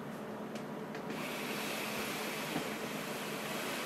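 A cardboard box slides across a table.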